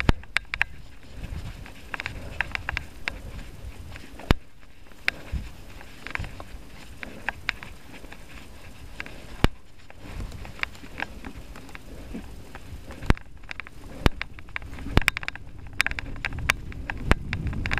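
A bicycle's frame and chain clatter sharply over bumps.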